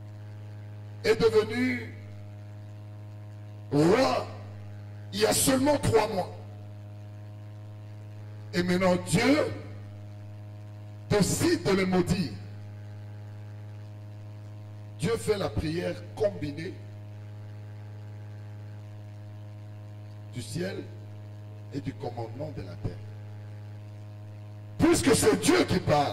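A man reads aloud through a microphone in short phrases with pauses.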